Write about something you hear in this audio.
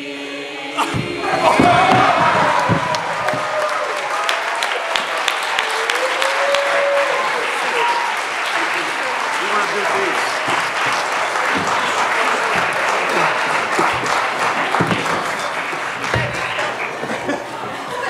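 A large audience cheers and shouts in an echoing hall.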